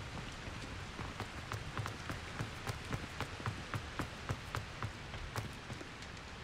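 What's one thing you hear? Footsteps patter quickly across stone paving.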